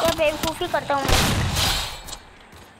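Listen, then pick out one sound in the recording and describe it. An explosion booms.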